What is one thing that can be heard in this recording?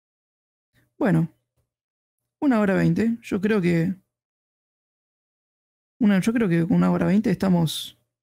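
A young man speaks calmly and close into a microphone, in short bursts.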